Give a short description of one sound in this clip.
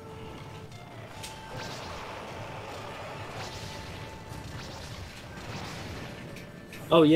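Wind howls steadily in a video game.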